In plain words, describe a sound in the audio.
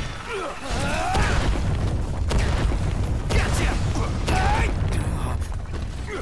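A fiery explosion booms and rumbles.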